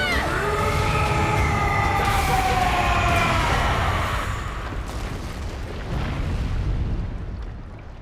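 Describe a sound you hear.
A heavy blast rumbles low and booms.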